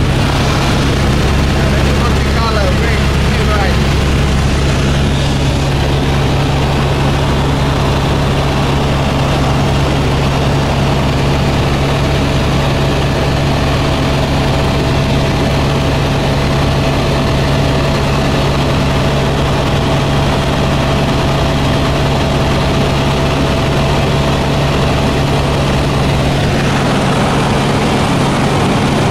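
A helicopter engine and rotor drone loudly and steadily.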